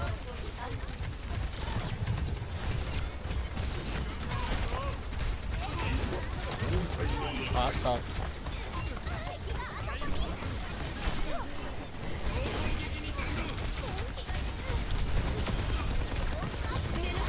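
Gunfire and energy blasts crackle rapidly from a video game.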